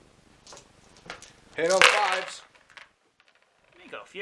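Dice rattle and clatter into a plastic bowl.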